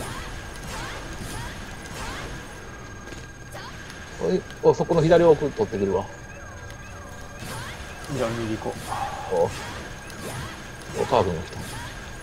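Laser beams zap past.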